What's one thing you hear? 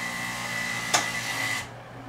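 A filling machine shuts off with a sharp click.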